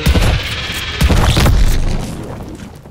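Flames burst with a crackling explosion.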